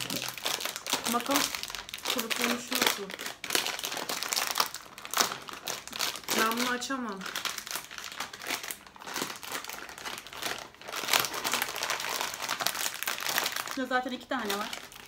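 A plastic snack wrapper crinkles and rustles as it is torn open.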